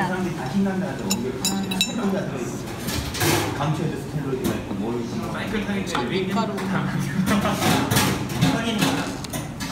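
A metal fork scrapes and clinks on a ceramic plate.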